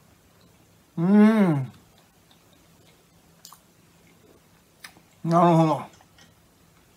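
A middle-aged man hums with pleasure while eating.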